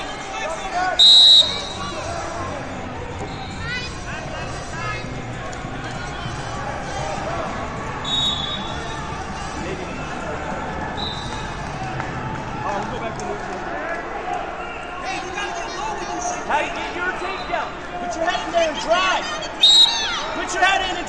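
A referee blows a sharp whistle several times.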